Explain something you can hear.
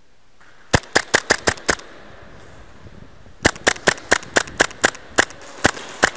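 A gun fires quick bursts of sharp shots that echo through a large empty hall.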